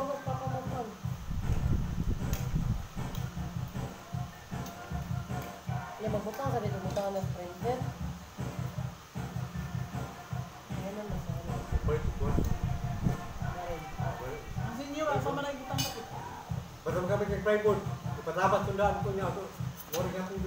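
Several adults, men and women, talk casually nearby.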